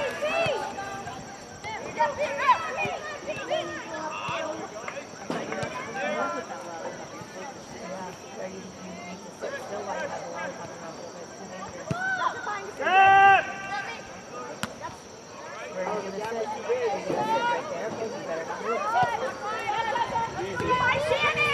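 Young women shout and call to each other across an open field outdoors.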